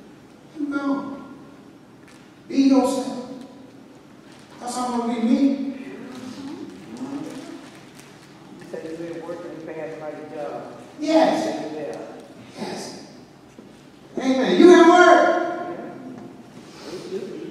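A man preaches into a microphone in bursts, heard over loudspeakers in a large echoing hall.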